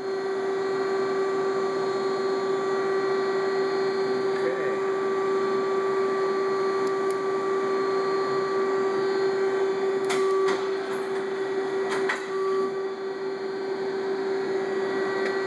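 A CNC machine whines steadily as it runs.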